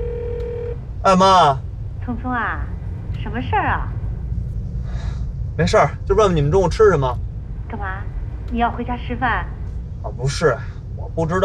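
A young man speaks with animation inside a car.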